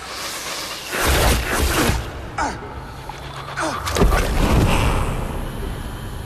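A volley of arrows whooshes through the air.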